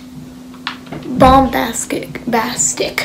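A young boy speaks excitedly close to a microphone.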